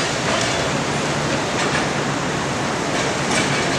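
Metal pipes clank as a worker handles them.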